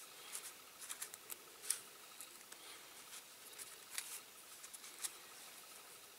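Fingers tap and rustle small pieces of paper on a table.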